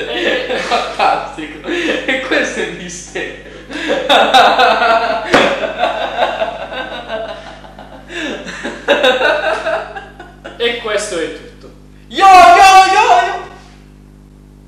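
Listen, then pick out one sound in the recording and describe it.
Young men laugh loudly together close by.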